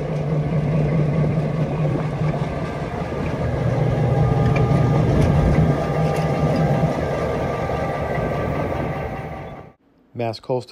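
A diesel locomotive engine idles with a deep, steady rumble.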